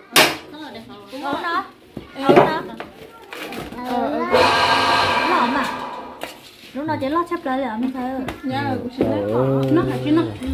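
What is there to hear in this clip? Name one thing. Young women talk and chat nearby.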